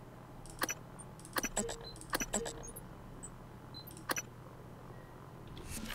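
Menu selections click softly, one after another.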